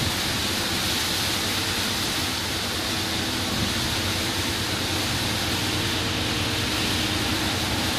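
Windscreen wipers thump back and forth.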